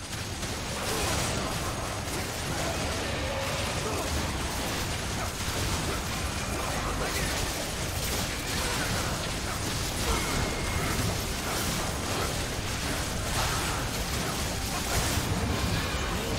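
Game combat effects crackle and boom as characters fight a large monster.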